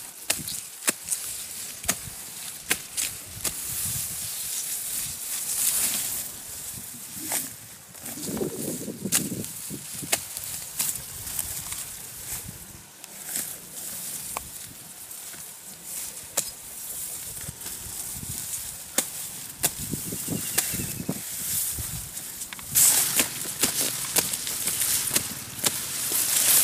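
Tall grass stalks rustle and swish as they are pulled and cut.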